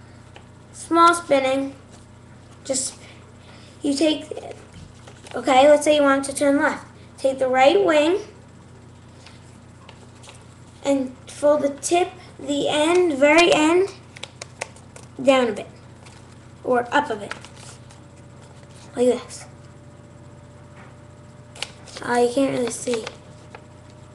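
A boy talks close to a microphone in short bursts.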